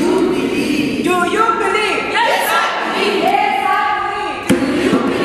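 A choir of men and women sings together in a large echoing hall.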